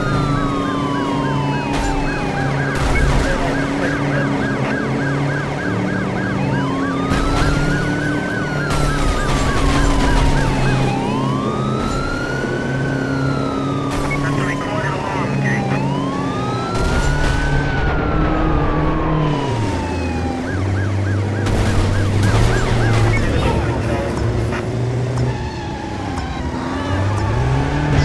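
Loud crashes and thuds of vehicles colliding.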